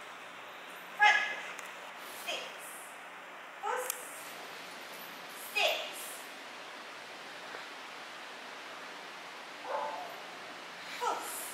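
A woman calls out short commands in an echoing hall.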